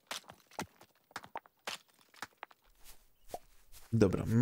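Footsteps patter lightly on a dirt path.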